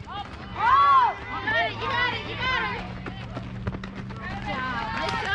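Young women shout and cheer loudly outdoors.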